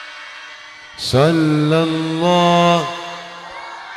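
An elderly man chants loudly through a microphone with a long drawn-out tone.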